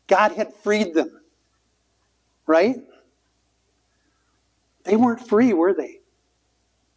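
A man speaks calmly and clearly, close by, in short phrases with pauses.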